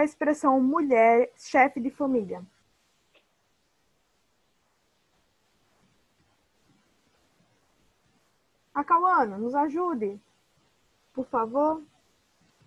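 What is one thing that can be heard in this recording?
A woman speaks calmly through an online call, pausing between phrases.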